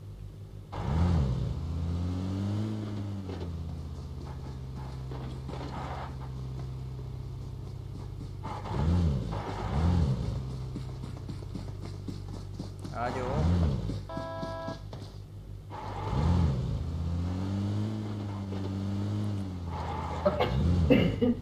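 A vehicle engine hums and revs up and down repeatedly.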